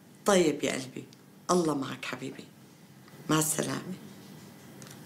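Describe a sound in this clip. A middle-aged woman speaks close up into a phone, with emotion.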